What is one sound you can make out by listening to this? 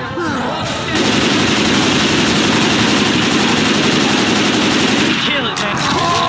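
An automatic rifle fires in bursts.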